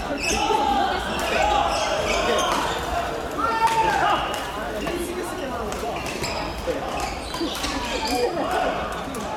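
Many people chatter and call out in a large echoing hall.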